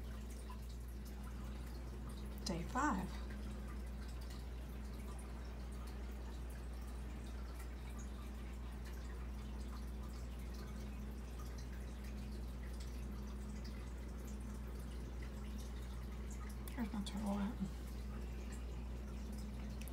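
An aquarium air pump hums steadily.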